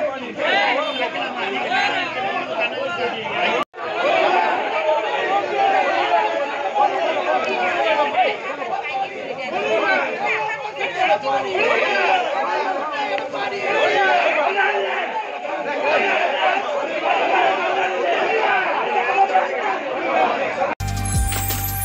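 A crowd of men shout and argue loudly outdoors.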